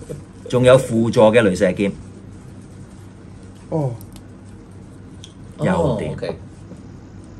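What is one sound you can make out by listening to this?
A man talks calmly close to the microphone, in short bursts.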